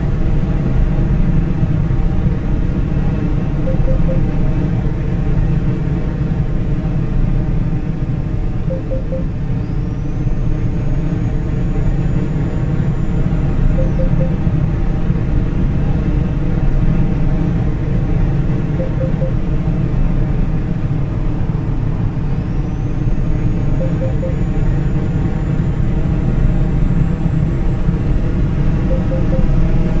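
Tyres roll on asphalt with a low steady rumble.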